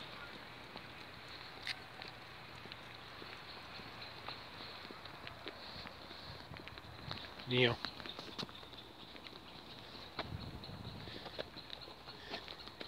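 Footsteps scuff along a paved path outdoors.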